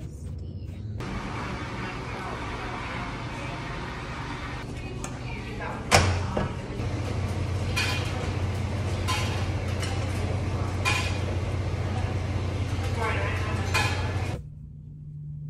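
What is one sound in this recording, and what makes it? Washing machines hum steadily in a large room.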